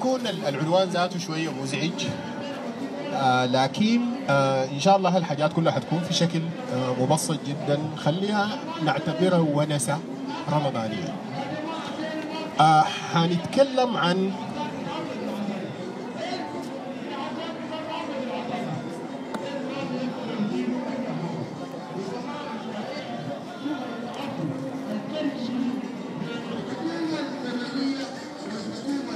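A man speaks loudly and with passion into a microphone, heard through loudspeakers outdoors.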